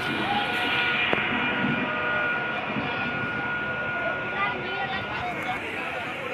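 A train rolls along the tracks with a steady rumble.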